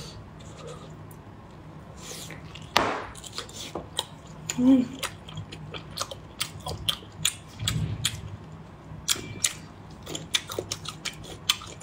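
A young woman chews juicy lobster meat close to the microphone with wet mouth clicks.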